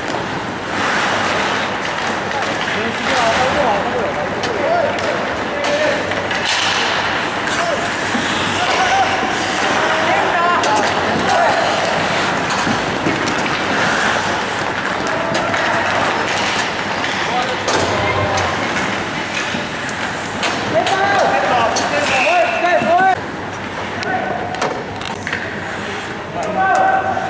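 Hockey sticks clack against a puck and each other.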